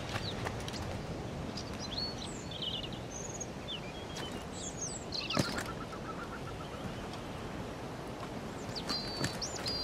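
Waves wash gently onto a shore.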